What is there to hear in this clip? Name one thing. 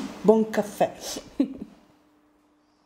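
A woman speaks casually nearby.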